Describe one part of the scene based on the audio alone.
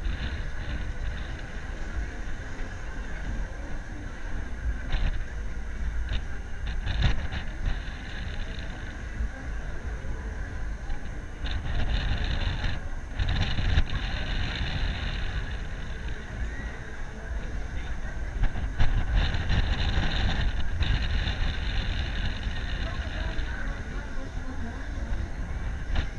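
Wind rushes loudly past, buffeting the microphone.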